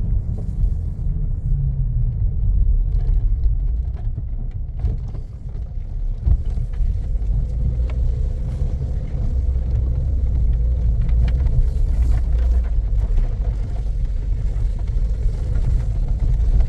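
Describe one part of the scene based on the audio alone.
A car's engine drones, heard from inside the cab.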